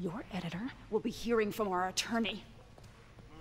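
A woman speaks firmly and close by.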